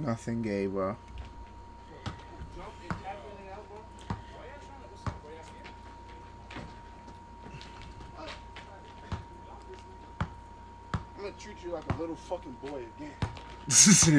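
A basketball bounces on pavement.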